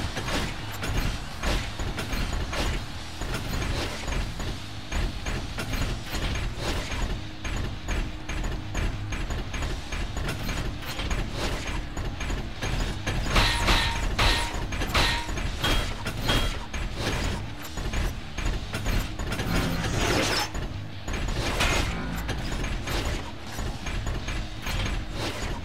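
Metal robots punch each other with heavy clanking blows.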